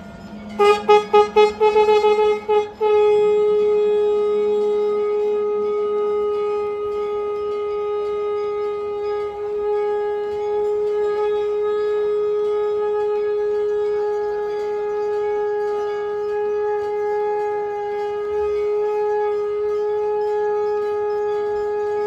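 A conch shell blows in short bursts, then in one long steady note, loud through a microphone.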